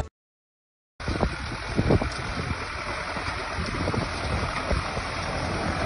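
A tractor engine rumbles steadily outdoors.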